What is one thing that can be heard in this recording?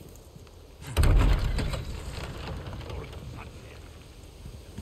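Heavy wooden doors are pushed open with a loud thud.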